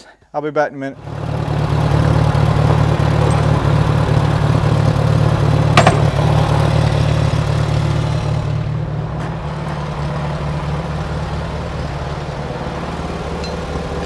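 A small tractor engine idles with a steady low chugging rumble.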